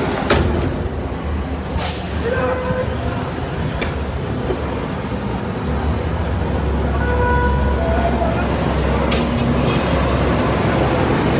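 Heavy vehicle engines rumble as trucks drive past.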